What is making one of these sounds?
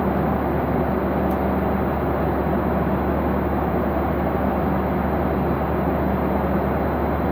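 Wind roars steadily against a high-flying craft.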